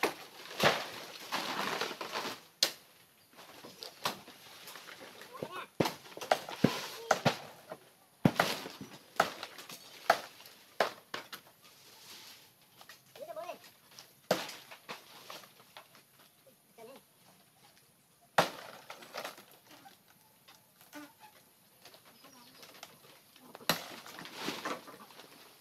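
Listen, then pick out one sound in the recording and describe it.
Footsteps crunch on dry leaves nearby.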